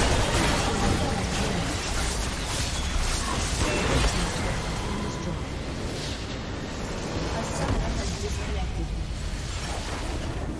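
Magic blasts and impacts crackle in a fierce battle.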